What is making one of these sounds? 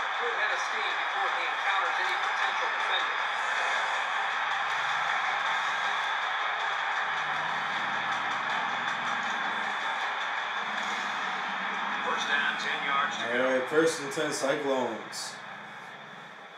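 A stadium crowd roars loudly, then quiets down.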